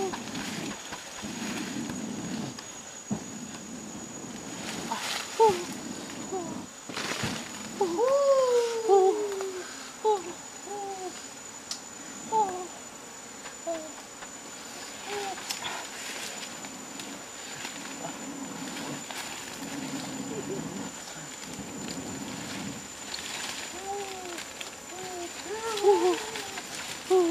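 Leafy branches rustle as they are handled.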